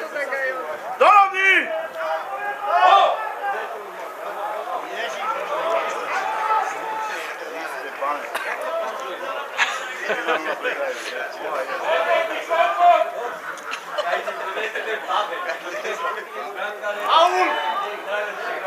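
Players shout to one another across a field, some way off.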